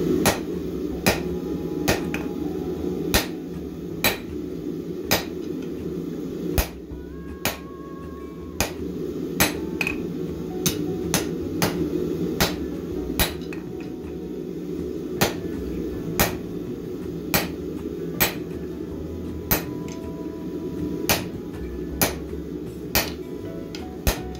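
A hammer strikes hot metal on an anvil with steady, ringing blows.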